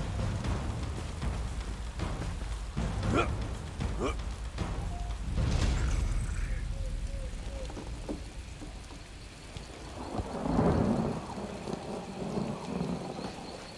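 A bear growls and snarls close by.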